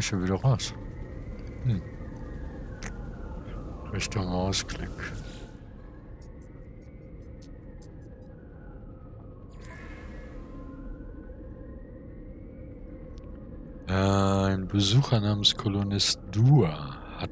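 A man talks close to a microphone with animation.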